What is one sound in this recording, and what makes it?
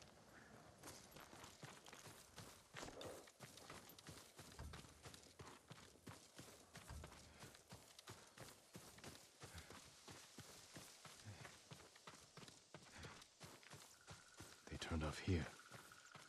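Footsteps run quickly through rustling grass.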